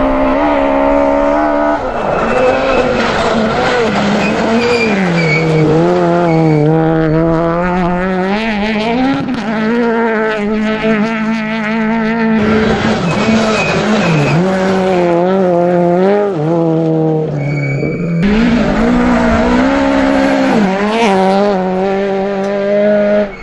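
A rally car engine revs hard and roars as gears change.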